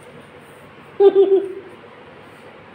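A cat meows loudly.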